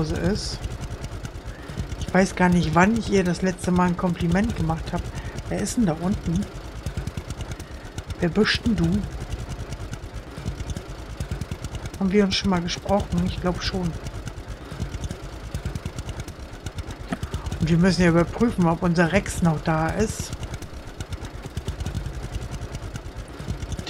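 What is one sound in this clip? A small tractor engine chugs steadily at low speed.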